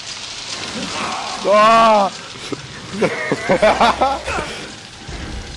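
A man groans loudly up close.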